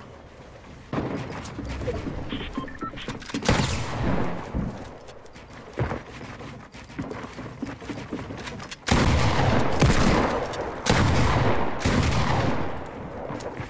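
Video game sound effects of wooden walls and ramps being built clatter in quick bursts.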